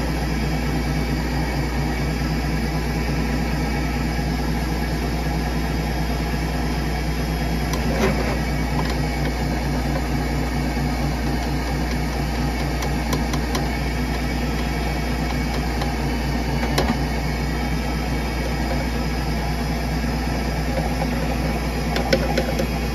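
A drain cleaning machine hums and whirs steadily.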